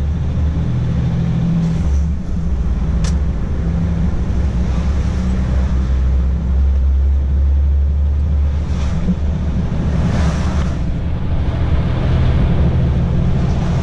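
Oncoming traffic whooshes past now and then.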